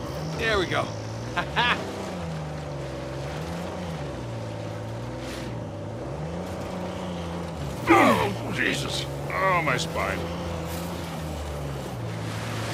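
A jeep engine drones steadily, its pitch rising and falling as it climbs over rough ground.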